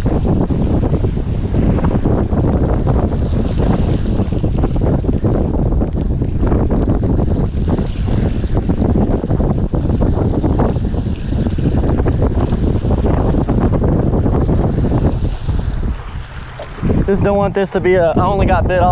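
Waves wash and splash against rocks.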